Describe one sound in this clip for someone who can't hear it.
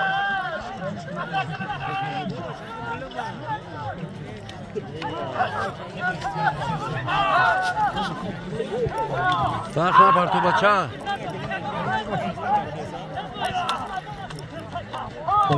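A crowd of men shout and call out loudly outdoors.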